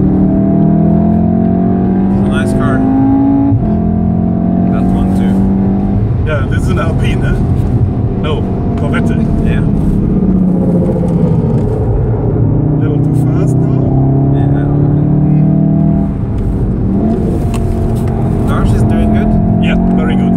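A car engine roars loudly, revving up through the gears and dropping as it shifts and brakes.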